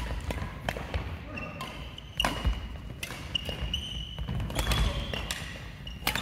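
Badminton rackets hit a shuttlecock with sharp pops in an echoing hall.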